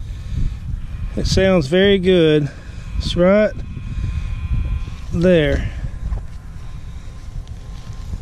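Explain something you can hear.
A knife cuts into damp soil and grass roots.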